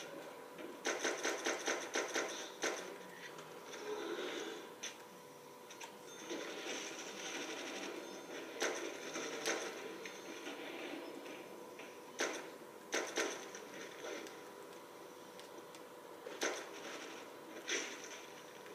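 Video game gunshots crack from a television speaker.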